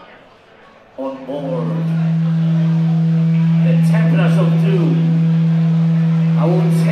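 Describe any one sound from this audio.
A band plays live music through loud speakers in a large echoing hall.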